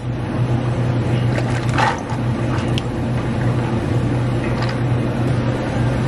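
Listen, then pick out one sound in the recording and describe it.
Liquid pours over ice in a cup.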